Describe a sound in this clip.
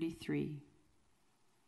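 A man speaks briefly over a microphone.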